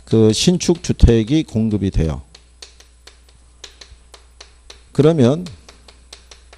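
A middle-aged man speaks firmly into a close microphone.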